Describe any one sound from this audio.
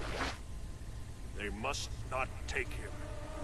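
A man speaks in a low, grave voice.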